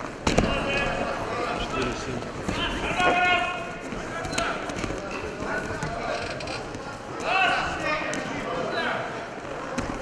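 Men shout loudly from close by.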